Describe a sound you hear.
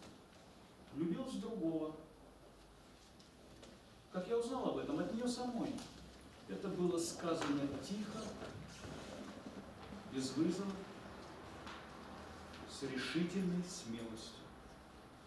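A man speaks in short phrases with long pauses, in a room with some echo.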